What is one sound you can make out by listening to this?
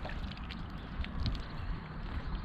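A fishing line whizzes off a spinning reel.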